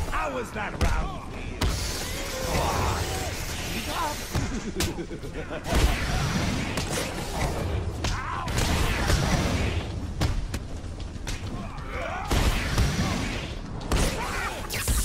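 Punches and kicks land with heavy thuds in a fast brawl.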